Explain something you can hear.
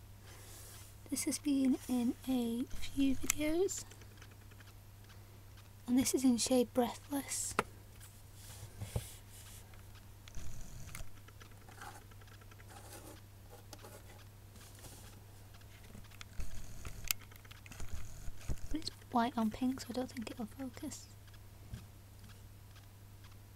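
Fingers handle and rub a small plastic tube close by.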